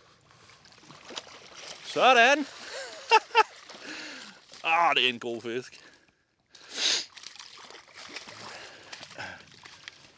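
A fish splashes and thrashes in shallow water.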